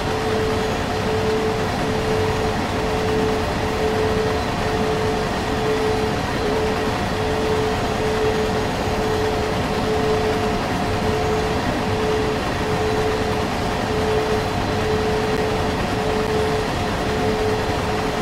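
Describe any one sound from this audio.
Train wheels clatter over rail joints in a steady rhythm.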